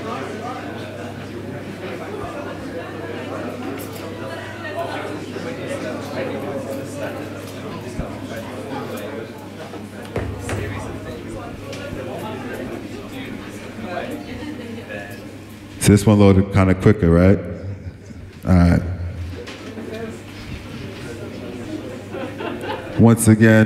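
A crowd chatters in a busy room.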